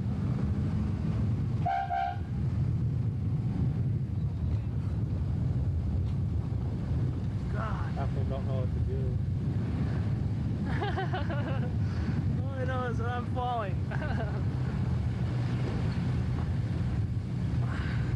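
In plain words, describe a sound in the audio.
A car engine hums steadily while driving along a road.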